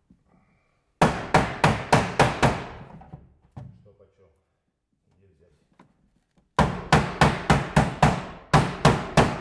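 A mallet taps rapidly on a metal sheet.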